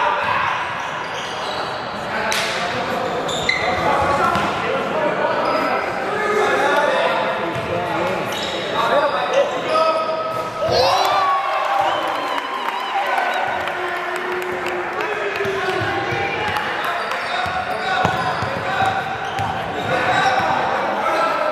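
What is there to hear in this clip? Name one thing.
Players and onlookers call out and talk across a large echoing gym.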